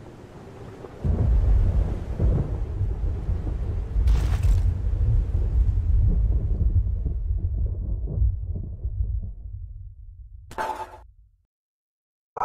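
A storm wind roars and rumbles loudly.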